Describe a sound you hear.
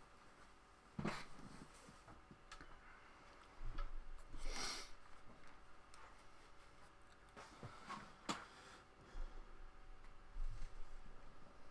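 A headset bumps and rustles close to a microphone.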